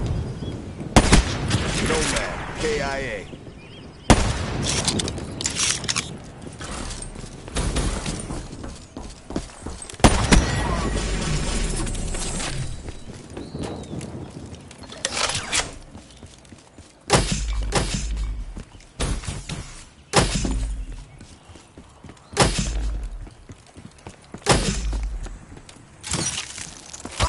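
Gunshots crack in short bursts from a video game.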